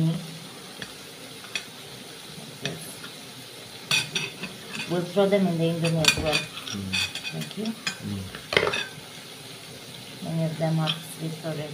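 A knife slices through soft food.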